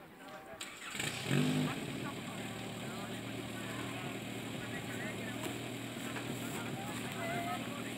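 A portable fire pump engine starts up and runs at high revs outdoors.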